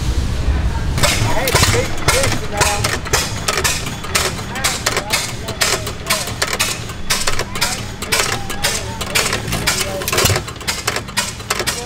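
An old stationary engine chugs and pops in a steady rhythm outdoors.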